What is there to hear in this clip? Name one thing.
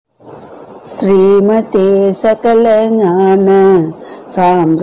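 A woman sings in long, held notes.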